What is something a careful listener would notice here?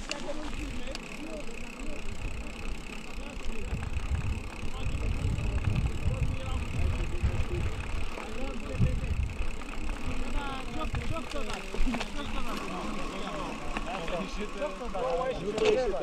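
Bicycle tyres roll over a dirt track.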